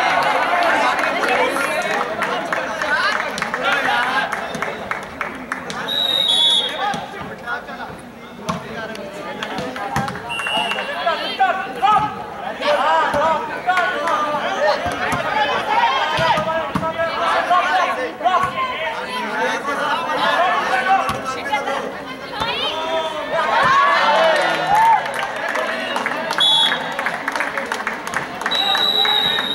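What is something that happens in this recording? A crowd of girls and young women shouts and cheers outdoors.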